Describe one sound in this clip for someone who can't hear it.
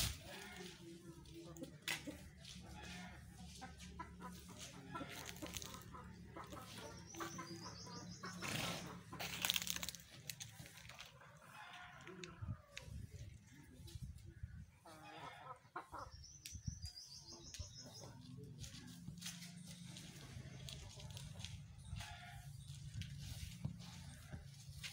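Hooves shuffle and scrape on dry, leaf-strewn ground.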